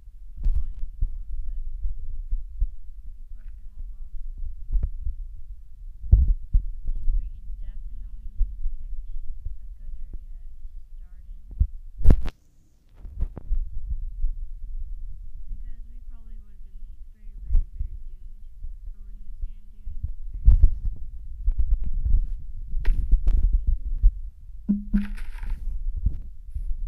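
A young girl talks quietly close to a microphone.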